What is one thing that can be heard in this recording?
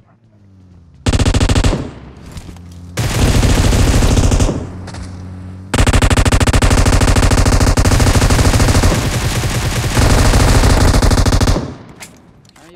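Loud game sound effects play from a phone speaker.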